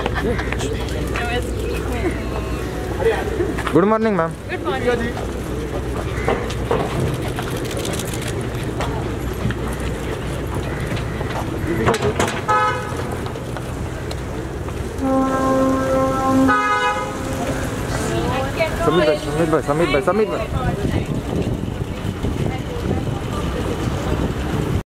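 Several people talk and call out nearby outdoors.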